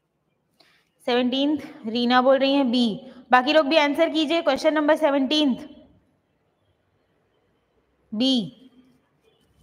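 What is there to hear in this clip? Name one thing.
A young woman speaks clearly into a close microphone, explaining with animation.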